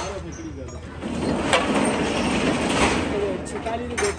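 A metal tool scrapes and knocks against a metal engine part.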